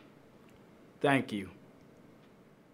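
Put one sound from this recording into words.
A second young man speaks briefly and cheerfully.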